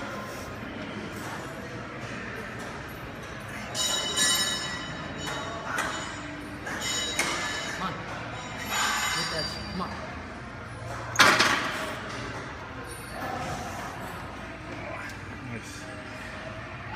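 A weight machine's plates clank.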